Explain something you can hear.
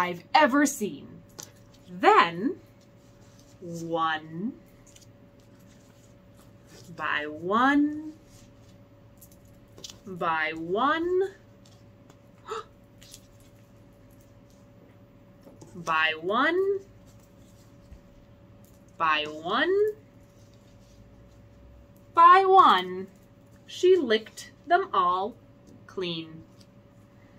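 A young woman speaks calmly and expressively, close by, in short phrases with pauses.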